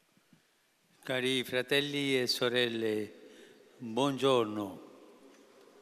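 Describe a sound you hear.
An elderly man speaks slowly into a microphone, his voice carrying over loudspeakers.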